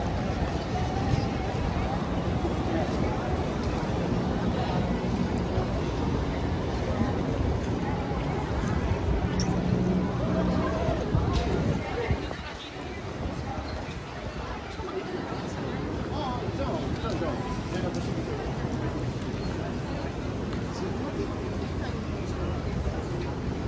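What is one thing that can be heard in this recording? A crowd of people chatter in a busy street outdoors.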